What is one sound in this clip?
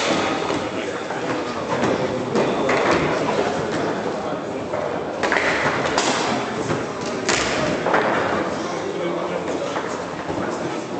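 Foosball rods clatter and the ball knocks sharply against the table.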